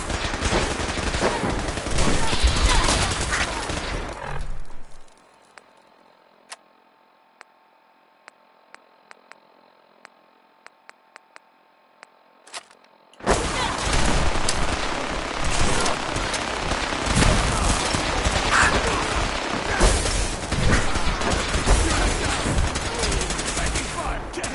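Explosions and gunfire rumble loudly.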